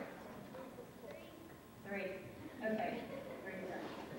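A woman speaks loudly in a large echoing hall.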